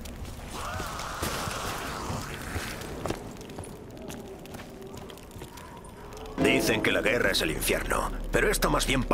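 Footsteps crunch on snow and then tap on stone.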